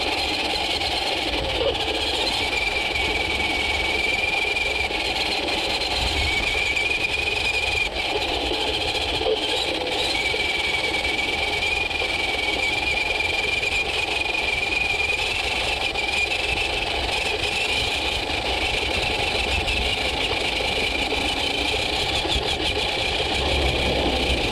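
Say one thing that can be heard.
A small electric motor whines steadily, close by.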